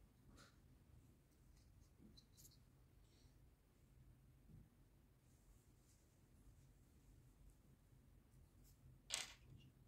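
Thin wires rustle softly as fingers twist them together.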